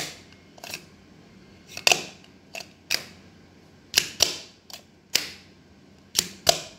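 A plastic toy hammer knocks repeatedly in short, uneven taps.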